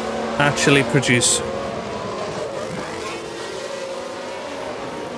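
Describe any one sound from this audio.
Racing car engines whine at high revs as the cars speed past.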